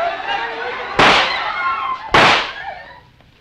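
Two gunshots ring out.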